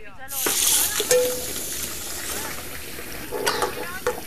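Dishes clink and clatter.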